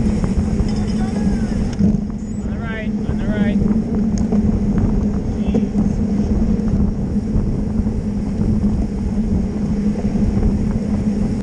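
Wind rushes and buffets loudly outdoors.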